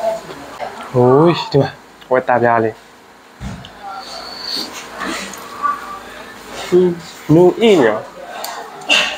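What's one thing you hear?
A young man hums in a rising and falling voice as he tastes food.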